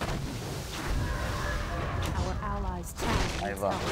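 Explosions burst amid fighting.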